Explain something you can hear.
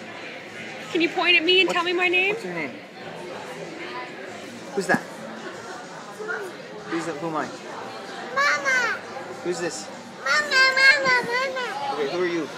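A toddler laughs and squeals happily close by.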